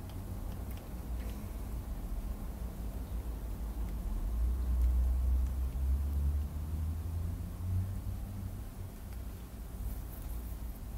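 A metal face roller rolls softly over skin.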